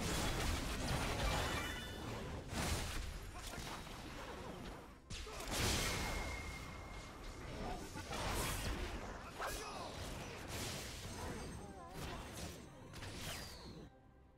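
Video game combat sound effects whoosh and crackle as spells are cast.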